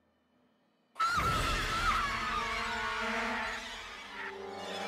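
A creature lets out a loud, shrill screech close by.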